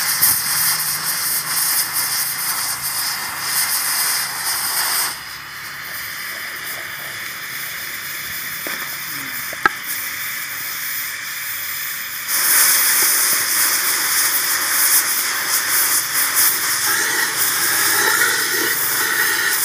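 An electric welding arc crackles and hisses loudly, close by.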